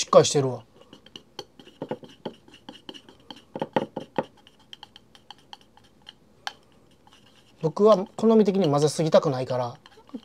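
Chopsticks click against a bowl while beating an egg.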